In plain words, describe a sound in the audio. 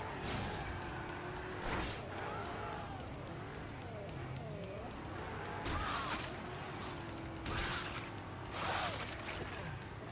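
A car engine roars and revs, rising and falling in pitch.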